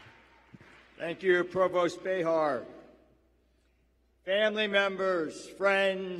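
A man speaks through a microphone in a large hall.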